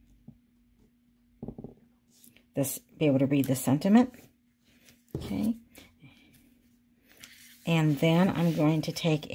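Paper rustles and taps softly under hands.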